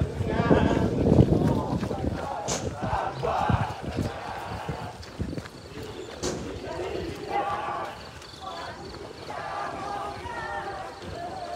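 Footsteps of a group of runners patter on a track.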